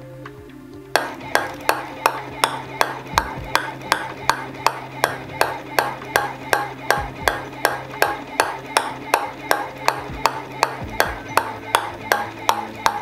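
A ball bounces rhythmically on a wooden board with rapid knocks.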